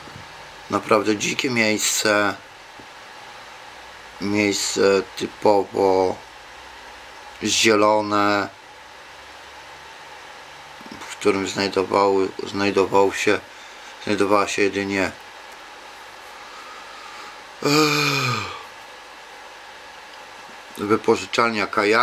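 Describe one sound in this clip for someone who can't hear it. A middle-aged man speaks calmly and close by, in bursts with pauses.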